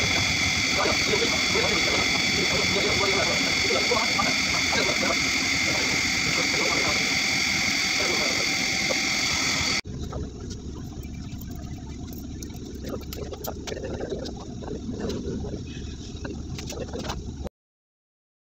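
Scissors snip close by.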